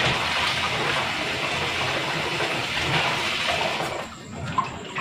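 Tap water runs and splashes steadily.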